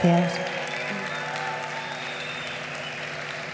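A guitar chord rings out through loudspeakers and slowly fades.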